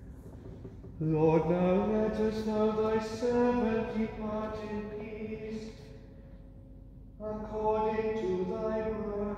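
A man sings a chant slowly in a large echoing hall.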